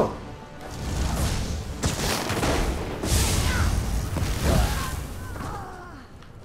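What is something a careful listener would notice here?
Lightning crackles and booms in loud bursts.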